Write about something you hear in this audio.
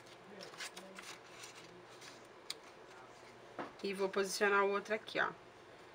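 Paper rustles softly as a card is pressed into place.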